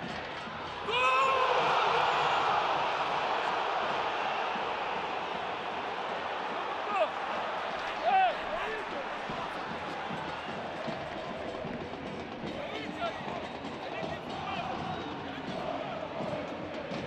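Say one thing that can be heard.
A stadium crowd roars and cheers.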